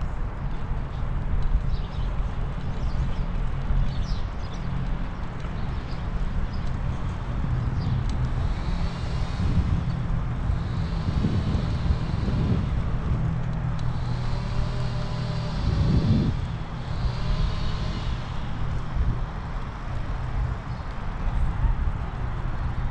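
Bicycle tyres rumble over wooden boardwalk planks.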